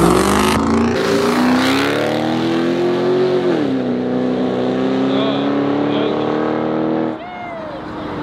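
A truck horn blares loudly in long, steady blasts that shift in pitch.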